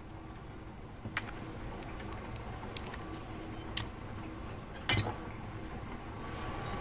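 A metal mechanism clicks and clunks into place.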